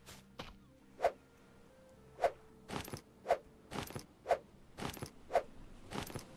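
Stones knock together sharply, again and again at an even pace.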